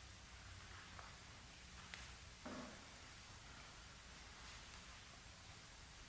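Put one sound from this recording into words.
A man's feet shuffle softly as he turns around.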